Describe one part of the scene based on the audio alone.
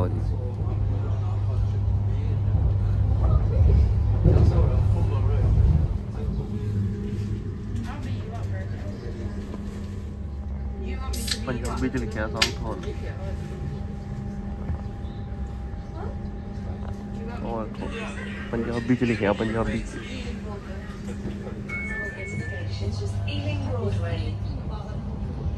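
A train hums steadily as it rolls along.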